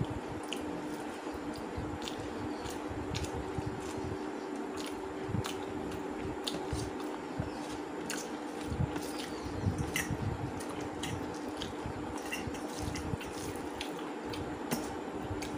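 A woman chews food with wet smacking sounds close by.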